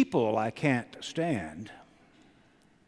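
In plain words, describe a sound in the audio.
An elderly man speaks with expression through a microphone in a large echoing hall.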